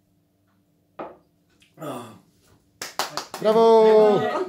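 A man exclaims loudly after a drink.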